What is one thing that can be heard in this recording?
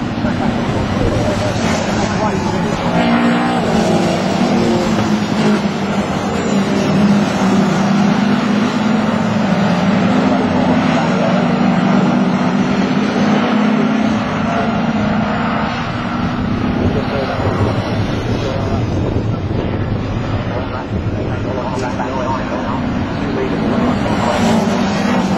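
Racing car engines roar steadily as cars speed around a track outdoors.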